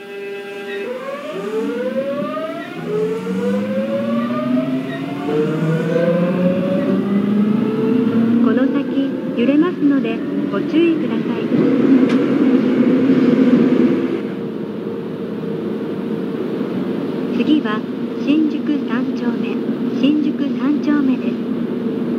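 Train wheels rumble and clatter over rail joints in a tunnel.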